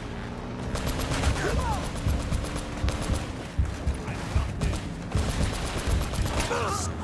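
Gunfire crackles in quick bursts.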